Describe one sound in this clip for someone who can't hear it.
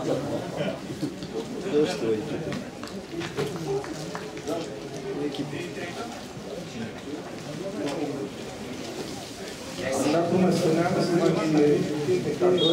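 A stadium crowd murmurs and chatters in the stands outdoors.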